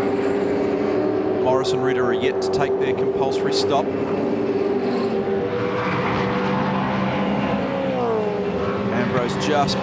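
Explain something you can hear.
Racing car engines roar at high revs.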